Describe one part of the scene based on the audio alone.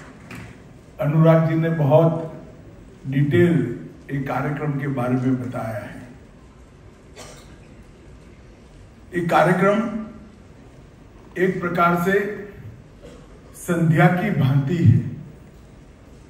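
An elderly man speaks through a microphone and loudspeakers, in measured bursts with pauses.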